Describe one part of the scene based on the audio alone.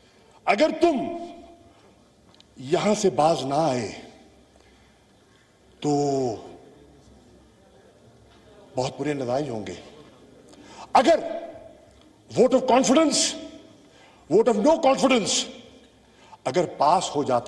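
A man speaks forcefully in short bursts into a microphone in a large echoing hall.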